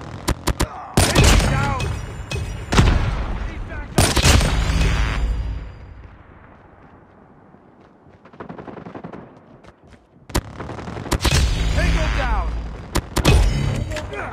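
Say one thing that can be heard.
A sniper rifle fires loud single shots that echo.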